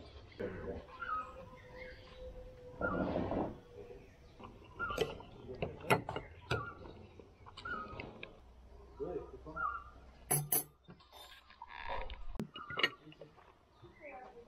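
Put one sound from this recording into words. Cutlery clinks against dishes.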